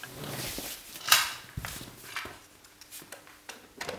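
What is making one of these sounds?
The lid of a cassette player clicks open.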